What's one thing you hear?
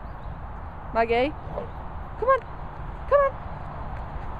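A dog yelps and whines in short, high bursts.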